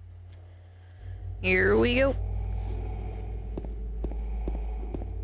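A low eerie drone swells and hums on.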